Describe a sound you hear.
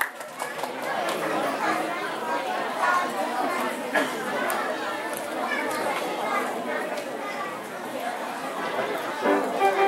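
A child plays a piano slowly and gently.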